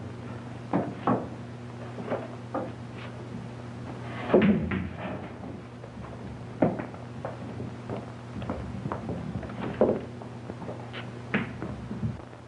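Billiard balls clack together sharply.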